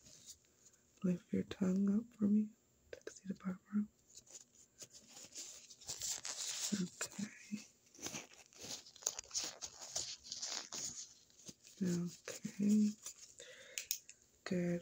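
A young woman speaks quietly close to the microphone.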